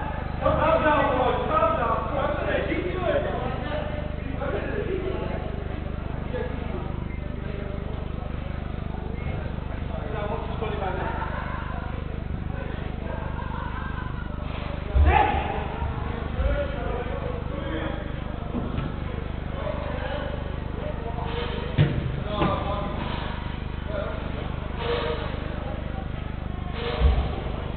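Men shout to each other across an echoing indoor hall.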